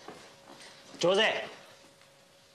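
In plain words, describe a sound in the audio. A man shouts a greeting loudly across a room.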